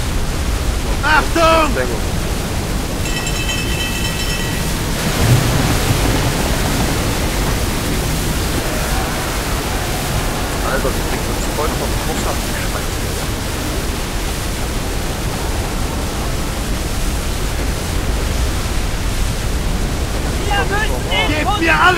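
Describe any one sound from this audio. Heavy waves crash and surge against a ship.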